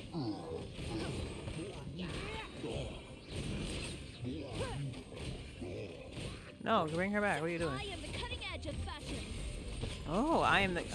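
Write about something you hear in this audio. Game battle effects crackle and blast.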